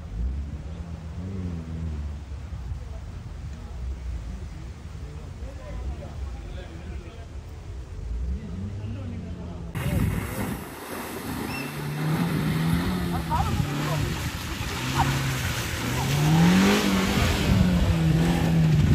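Tyres churn and spin in mud.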